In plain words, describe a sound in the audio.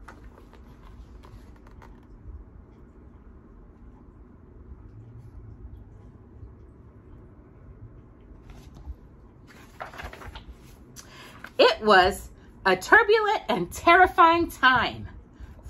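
Stiff book pages rustle as they are turned.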